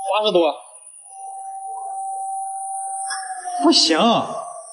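A voltage tester gives a steady beep.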